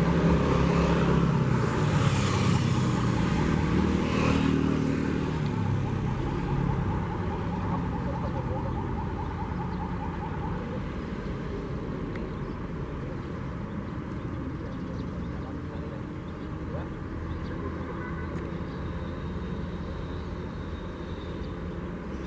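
A high-speed train rumbles along the tracks.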